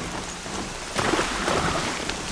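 Water splashes under running hooves.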